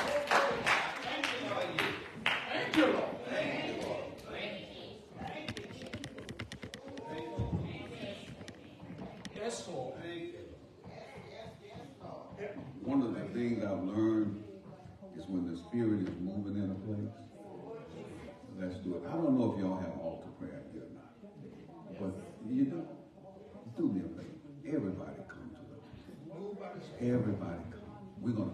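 A middle-aged man preaches with animation into a microphone in an echoing hall.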